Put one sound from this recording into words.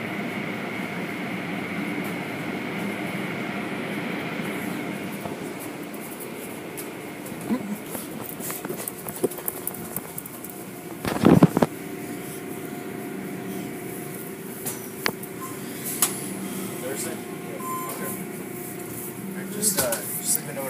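Machinery hums steadily.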